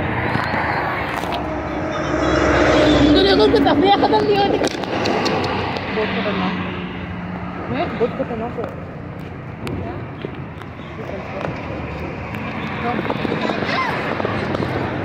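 Women talk excitedly nearby outdoors.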